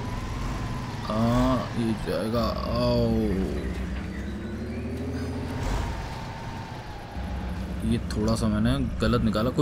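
A heavy truck engine rumbles and strains at low speed.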